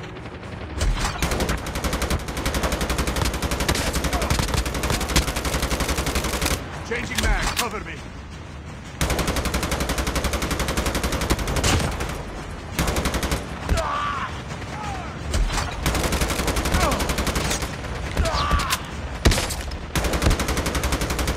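A rifle fires in rapid, loud bursts.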